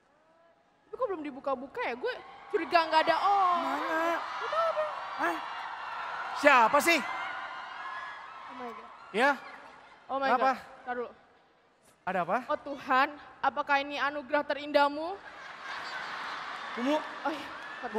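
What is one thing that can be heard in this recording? A young man speaks loudly and animatedly through a microphone on a stage.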